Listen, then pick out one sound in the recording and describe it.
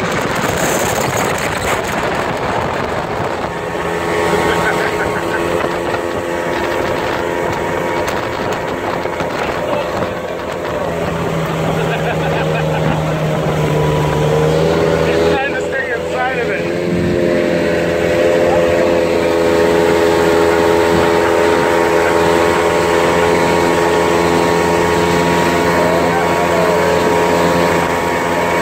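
Water splashes and rushes against a speeding boat's hull.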